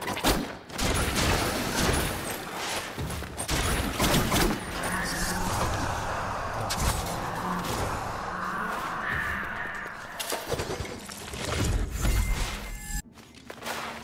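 Heavy blows thud and crack.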